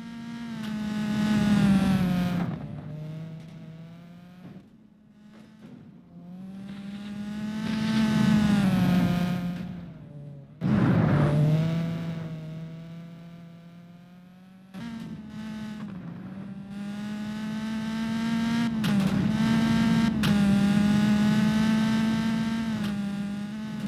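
A rally car engine revs high and shifts through gears.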